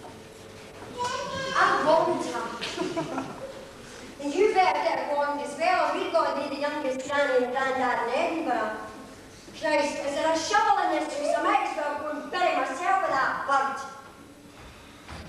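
A woman speaks with animation on a stage, slightly distant.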